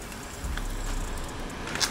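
Dry oat flakes pour and patter into a bowl.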